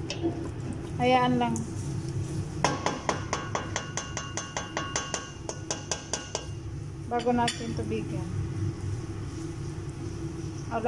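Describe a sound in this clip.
Thick sauce bubbles and simmers in a pot.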